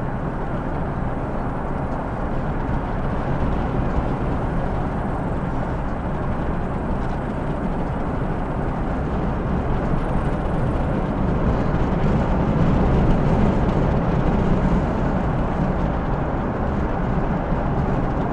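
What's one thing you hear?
A car engine hums steadily inside a moving car.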